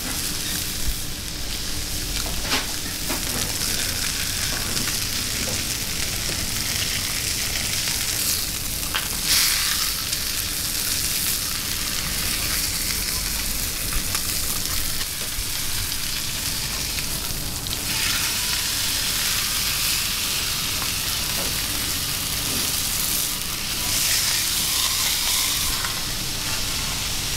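Meat sizzles steadily in hot pans.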